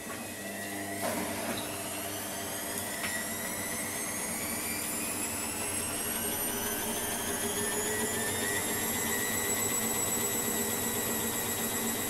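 A washing machine drum hums and rumbles steadily.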